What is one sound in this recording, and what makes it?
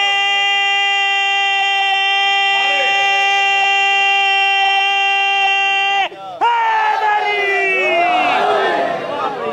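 A man chants in a long, loud, held voice through a microphone and loudspeaker.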